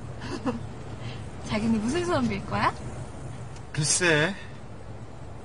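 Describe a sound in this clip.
A young woman sings an emotional song.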